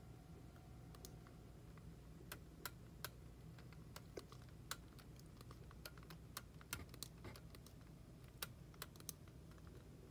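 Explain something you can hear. Soft electronic clicks tick one after another.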